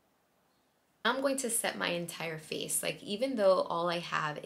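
A young woman talks calmly and clearly into a nearby microphone.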